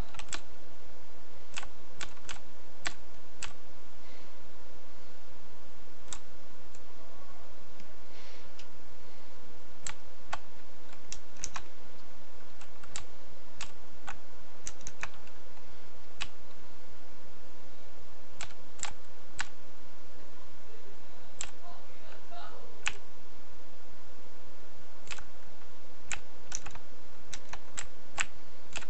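Short footstep clicks tap at uneven intervals.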